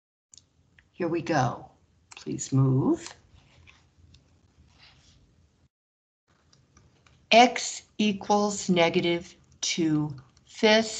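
A woman speaks calmly through a microphone, explaining.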